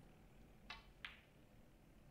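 Snooker balls knock together.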